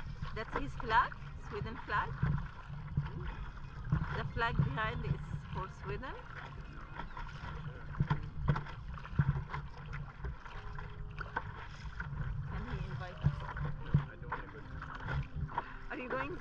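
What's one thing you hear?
Small waves lap and splash on open water.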